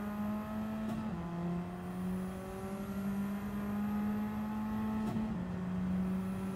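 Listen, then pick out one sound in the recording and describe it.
A racing car engine hums steadily at high revs, dropping briefly as it shifts gear.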